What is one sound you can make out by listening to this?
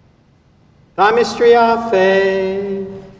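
An elderly man chants in a sung voice, echoing through a large hall.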